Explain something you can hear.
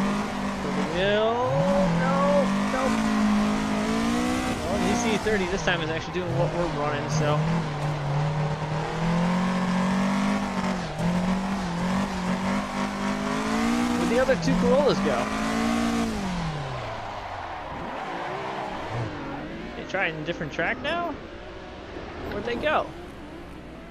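Tyres squeal as a car slides through corners.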